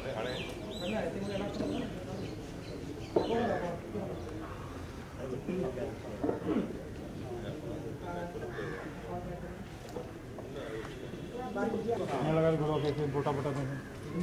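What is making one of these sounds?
A crowd of men murmur and talk quietly outdoors.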